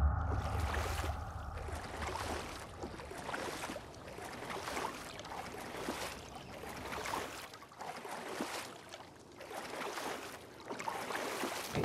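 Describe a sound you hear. Arms stroke through water with soft, repeated splashes.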